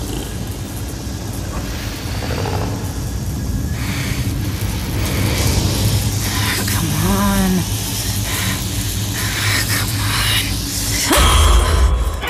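Electric sparks crackle and spit.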